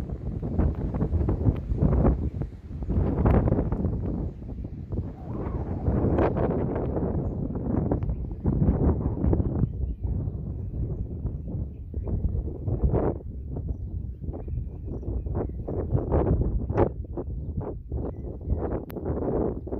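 Wind gusts and buffets loudly outdoors.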